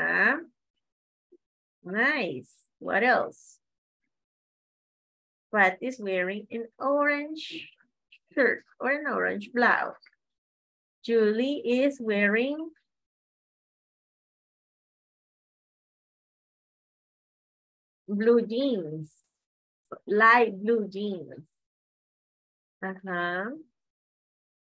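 A woman speaks through an online call, reading out in short phrases with pauses.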